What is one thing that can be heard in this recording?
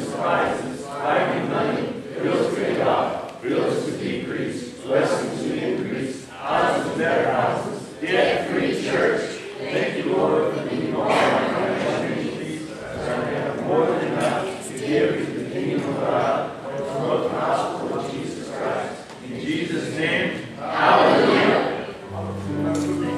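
A choir of men and women sings together through loudspeakers in a large echoing hall.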